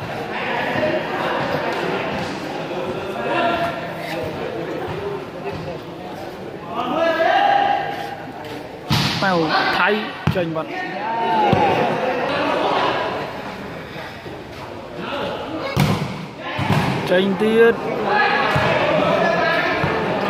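A crowd of men chatters and calls out throughout a large echoing hall.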